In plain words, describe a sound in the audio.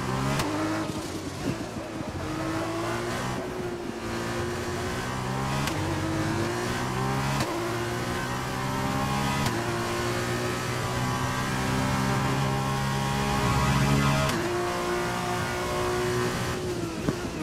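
A racing car engine revs high and drops sharply with each gear change.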